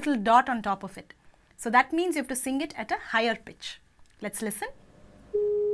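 A woman speaks calmly and clearly into a close microphone.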